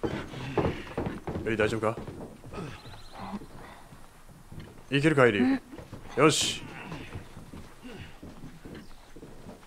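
Footsteps thud on a hollow metal roof.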